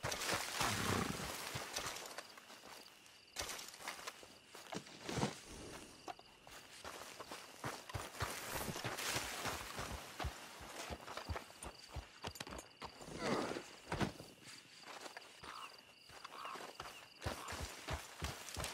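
Footsteps crunch on dry dirt and brush.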